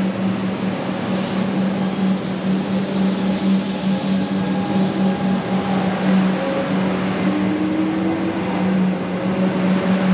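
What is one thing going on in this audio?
A train starts off and rolls slowly along the tracks.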